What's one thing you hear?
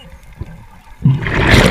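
Air bubbles from a diver's breathing rush and gurgle underwater.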